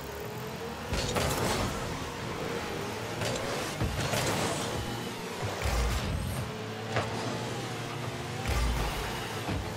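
A game car's rocket boost roars in short bursts.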